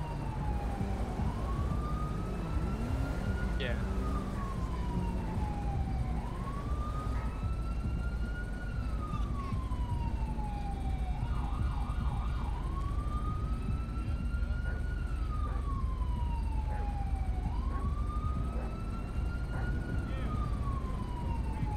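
A siren wails up and down, steady and nearby.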